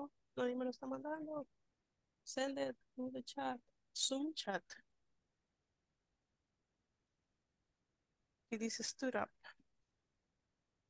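A woman speaks calmly over an online call, in short phrases.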